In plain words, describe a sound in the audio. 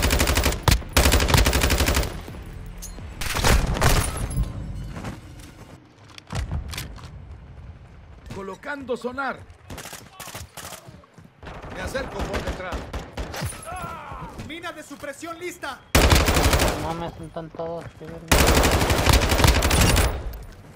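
Rapid automatic gunfire rattles in loud bursts.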